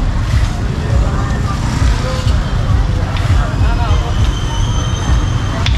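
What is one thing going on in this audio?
Motorbike engines rumble by on a street outdoors.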